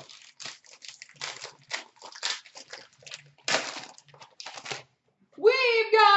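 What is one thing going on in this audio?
A foil card pack crinkles as hands handle it.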